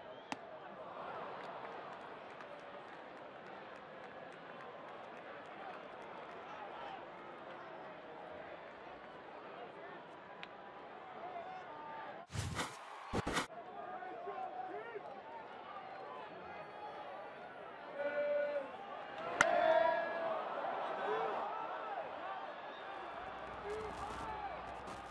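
A large ballpark crowd murmurs and cheers.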